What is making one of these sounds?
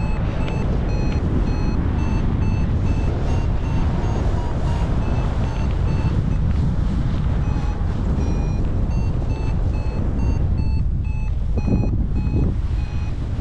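Strong wind rushes and buffets loudly in open air.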